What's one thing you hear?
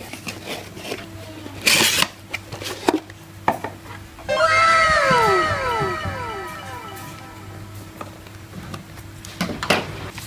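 A cardboard box rustles and scrapes as it is opened and handled.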